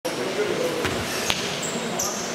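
A basketball bounces on the floor, echoing in a large hall.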